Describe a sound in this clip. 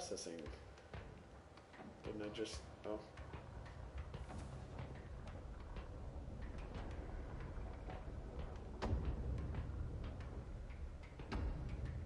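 Footsteps tap on a hard floor in a large echoing space.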